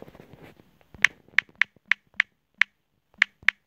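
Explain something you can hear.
Phone keyboard keys click rapidly in quick taps.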